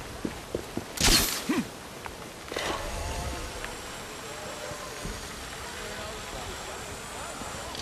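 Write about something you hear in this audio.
A rope line whirs taut and whizzes along.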